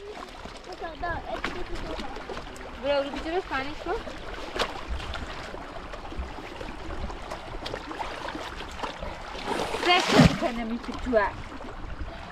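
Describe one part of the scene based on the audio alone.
A young girl talks in a high voice nearby.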